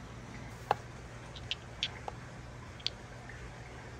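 Glass marbles click together as a hand picks them up.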